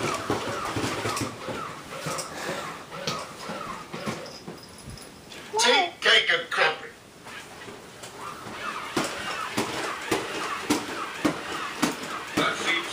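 Toy robots whir and click as they walk.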